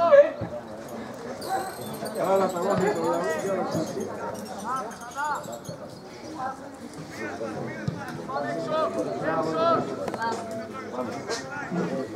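Young men shout and call out to each other outdoors, some distance away.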